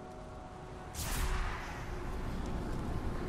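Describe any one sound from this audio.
A large creature moves with a sudden rushing whoosh.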